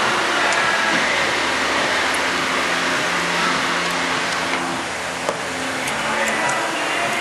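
A plastic wiper blade clicks and rattles as it is handled.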